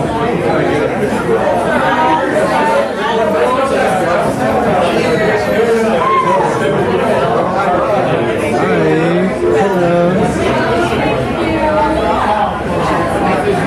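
A crowd of men and women chatter close by, indoors.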